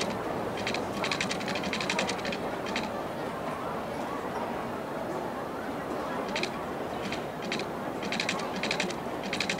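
City traffic hums steadily in the background.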